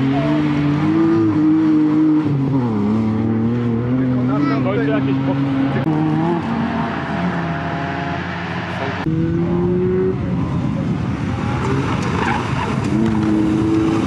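A rally car's engine races at full throttle, changing gear as it speeds past.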